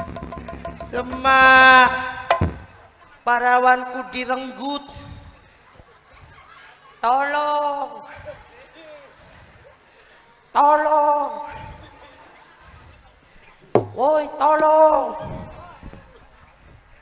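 A man shouts and sings loudly in bursts through a microphone and loudspeakers.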